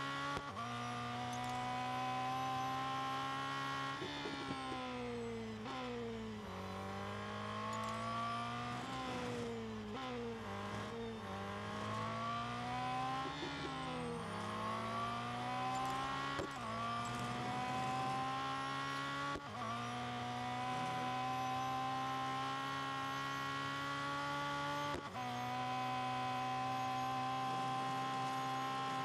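A race car engine roars loudly, its pitch falling as it slows for corners and climbing as it speeds up and shifts gears.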